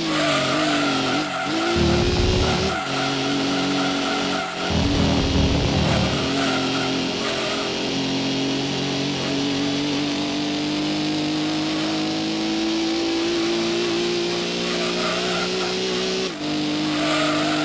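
A racing car engine in a video game revs high and accelerates through the gears.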